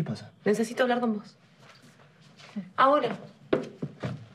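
A woman speaks emotionally nearby.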